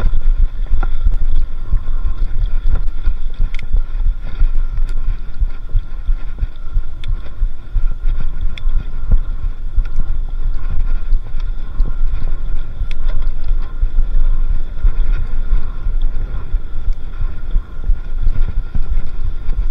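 A bicycle's frame and chain clatter and tick over bumps.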